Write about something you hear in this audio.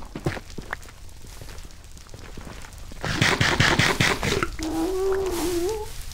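Fire crackles nearby.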